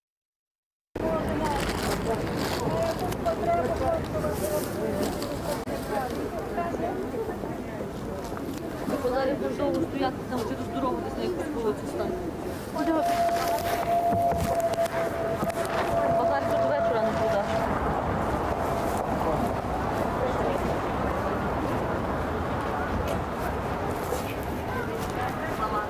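A busy street market murmurs with many voices outdoors.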